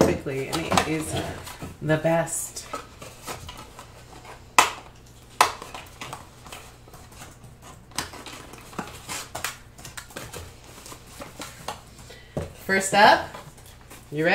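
Cardboard flaps rustle and scrape as a box is opened by hand.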